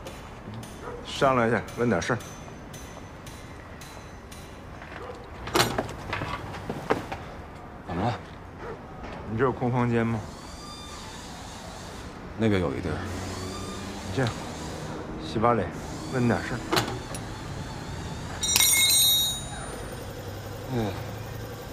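A young man speaks, sounding startled and hesitant.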